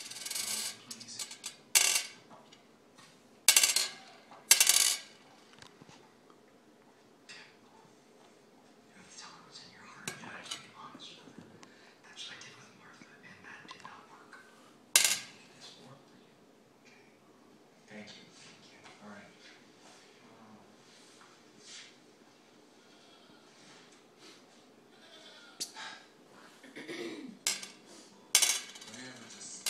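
Small balls click and clatter against a glass tabletop.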